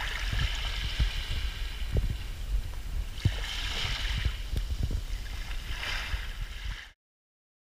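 Wind blusters outdoors and rustles palm fronds.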